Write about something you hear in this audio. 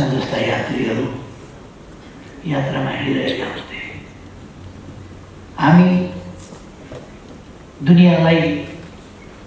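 An elderly man speaks in bursts with pauses through a microphone in a reverberant hall.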